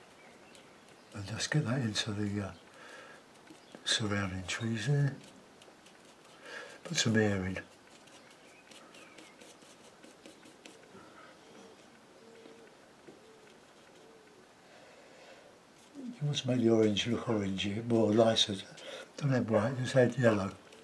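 A brush strokes softly across canvas.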